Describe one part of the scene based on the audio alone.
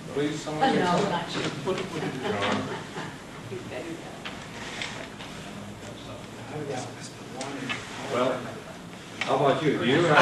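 A man speaks calmly at a meeting, heard from across a room.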